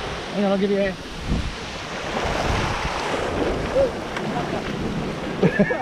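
Water splashes as something thrashes in the shallows.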